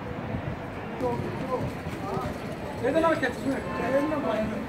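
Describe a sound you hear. Nearby people chatter, men and women talking casually.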